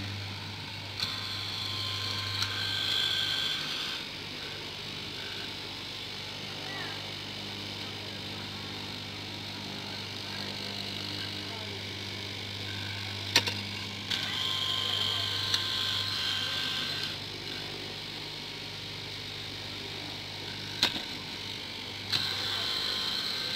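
A straight-knife cutting machine slices through stacked fabric.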